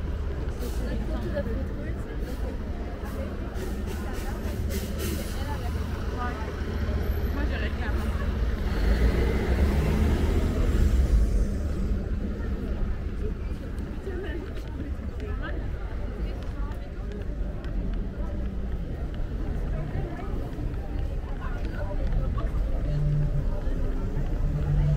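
Traffic rumbles along a city street nearby.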